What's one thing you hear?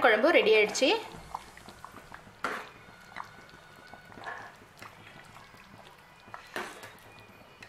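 A ladle stirs a thick simmering sauce, clinking against a metal pot.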